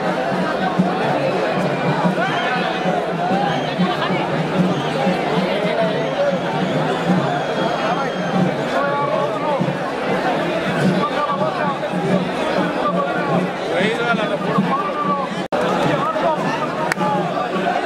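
A large crowd of men shouts and chants together outdoors.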